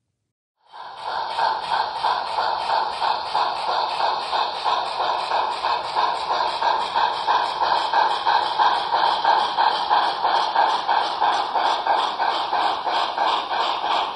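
A small model steam locomotive chuffs steadily and quickly.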